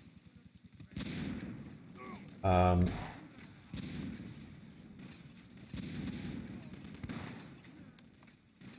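A rifle fires sharp shots that echo briefly.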